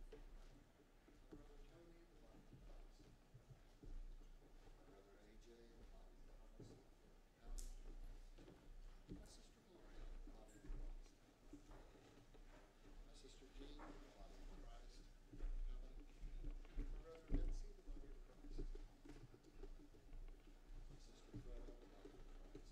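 Footsteps shuffle across a carpeted floor.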